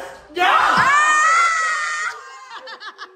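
A young man shouts excitedly close by.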